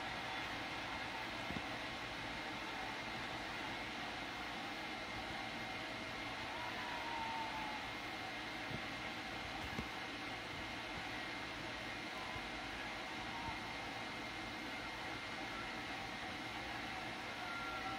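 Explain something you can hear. A crowd cheers faintly through a television speaker.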